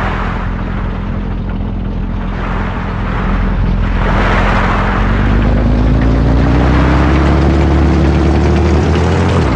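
A tank engine rumbles steadily and revs up.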